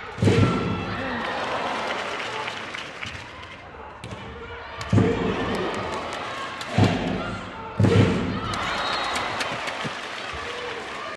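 A crowd cheers in bursts in a large echoing hall.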